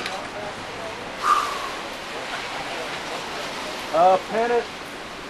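A woman speaks nearby outdoors.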